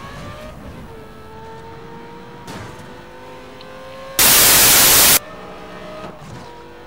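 A sports car engine roars and rises in pitch as the car speeds up.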